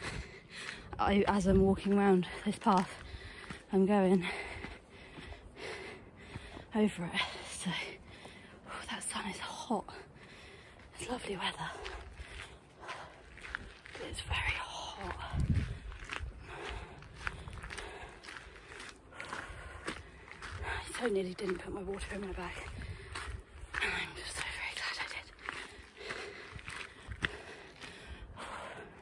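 A young woman talks breathlessly and close up.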